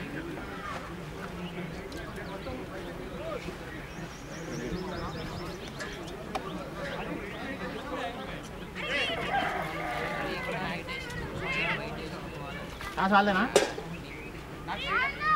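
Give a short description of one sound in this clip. Men talk and call out at a distance outdoors.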